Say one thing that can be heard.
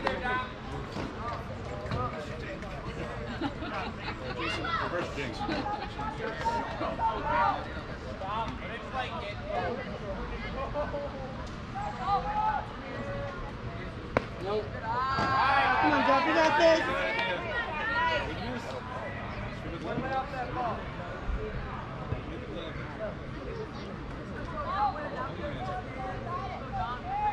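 Men and boys call out and chat at a distance, outdoors.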